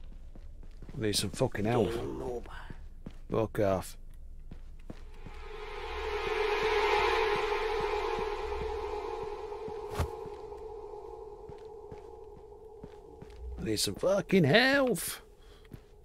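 An older man talks with animation into a close microphone.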